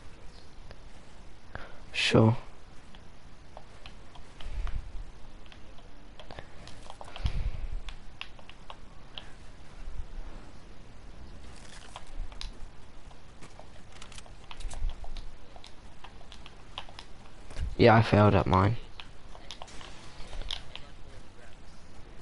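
Building pieces snap into place with quick clicks and thuds.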